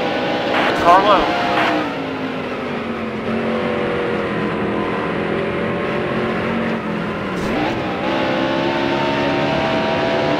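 Racing car engines roar steadily, their pitch shifting as they change speed.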